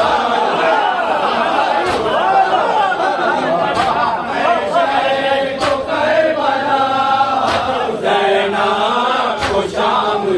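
A crowd of men chants loudly together in a rhythmic lament.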